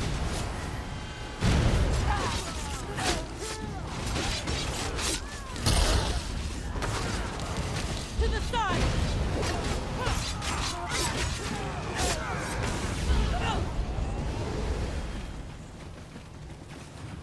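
Water splashes underfoot as fighters run.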